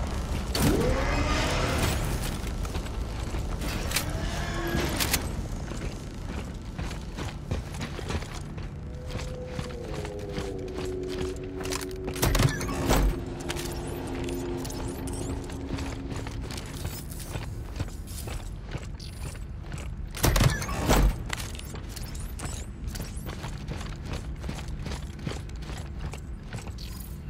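Heavy boots clank on a metal floor.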